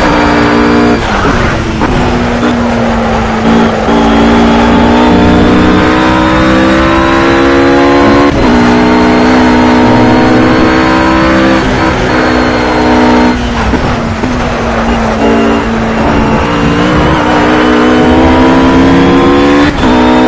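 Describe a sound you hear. A racing car engine revs hard at full throttle, shifting up and down through the gears.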